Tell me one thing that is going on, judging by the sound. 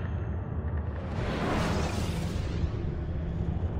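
A loud whoosh rises and fades.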